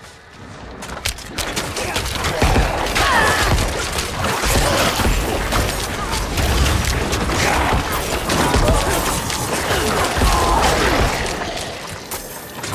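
Weapons clash and magic bursts loudly in a frantic fight.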